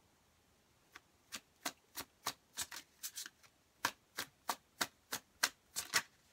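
Cards are shuffled and snapped in quick riffles.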